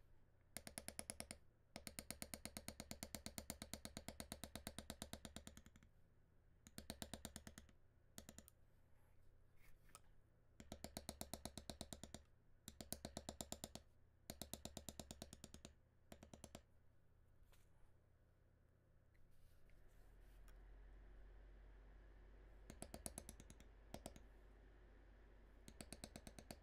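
A mallet taps rapidly on a metal stamping tool in quick bursts of light knocks.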